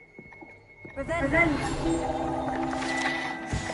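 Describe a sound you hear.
A magic spell crackles and fizzes against metal armour.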